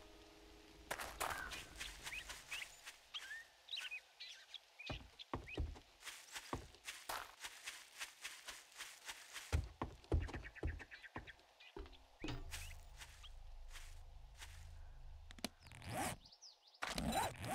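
Footsteps crunch quickly over gravel and grass.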